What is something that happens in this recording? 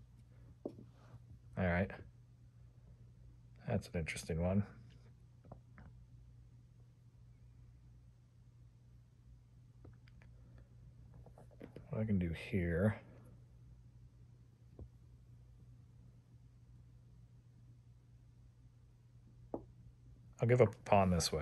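Chess pieces click softly as they are set down on a board.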